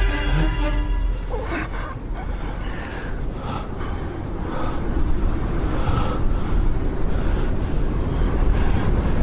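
Two men scuffle, their clothing rustling.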